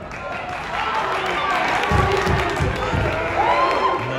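Wrestlers' bodies thump on a mat.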